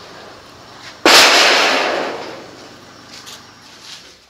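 Builders knock and set concrete blocks in the distance, outdoors.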